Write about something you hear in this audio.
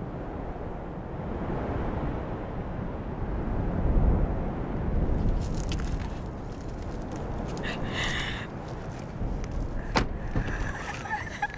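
Wind blows hard outdoors, rumbling against the microphone.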